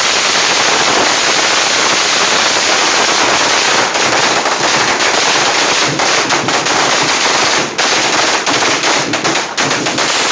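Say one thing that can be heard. Firecrackers crackle and pop in a dense, loud barrage.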